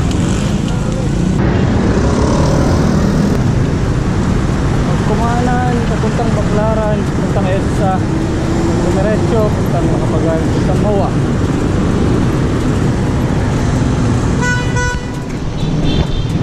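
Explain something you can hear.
Wind roars steadily across the microphone of a moving bicycle.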